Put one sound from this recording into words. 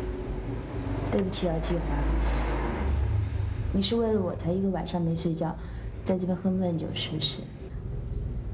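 A woman speaks softly and with concern, close by.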